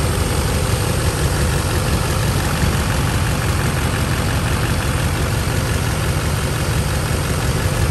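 A diesel engine idles with a steady, loud rumble close by.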